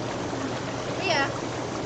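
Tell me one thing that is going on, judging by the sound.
A young woman laughs and squeals briefly.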